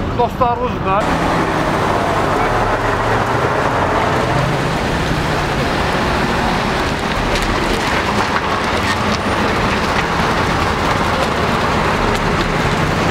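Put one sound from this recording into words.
A truck engine rumbles as the truck drives slowly past.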